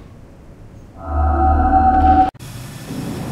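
A spell crackles with a loud low hum.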